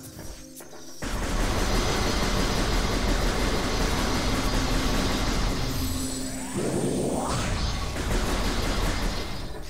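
Energy shots fire rapidly from a blaster.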